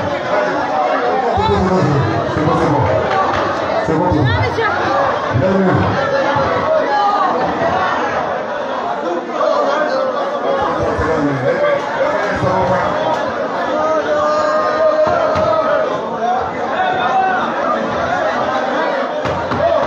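A man speaks loudly and with animation into a microphone, heard through loudspeakers in an echoing hall.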